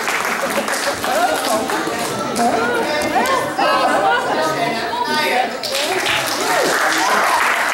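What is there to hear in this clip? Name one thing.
A crowd of children chatters in a large echoing hall.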